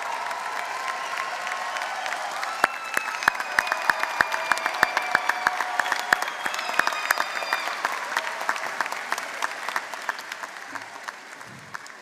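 A large crowd cheers and whistles in a big echoing hall.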